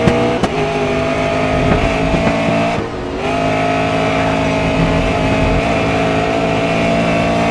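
A racing car engine roars at high revs, dropping briefly as it shifts gear.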